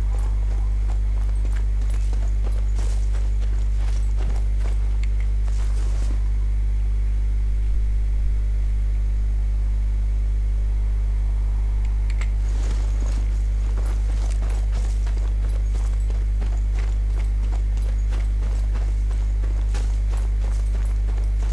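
Footsteps crunch on stone and dirt.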